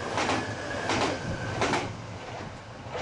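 A train rushes past close by with a loud roar.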